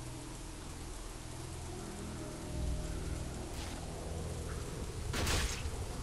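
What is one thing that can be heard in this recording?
A magic beam zaps with a low humming crackle.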